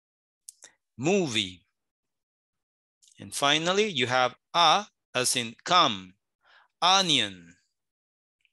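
A woman speaks slowly and clearly over an online call, pausing between words.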